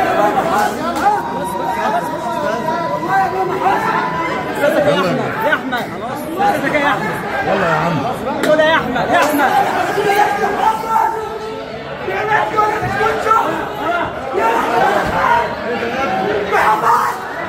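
A crowd of voices talks and shouts all at once nearby.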